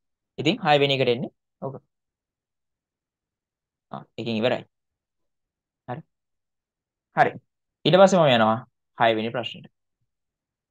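A young man speaks calmly and clearly into a close microphone, in short bursts with pauses.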